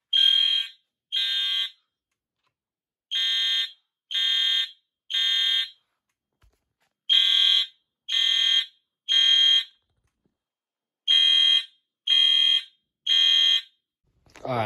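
Fire alarm horns sound in loud, repeated bursts of three.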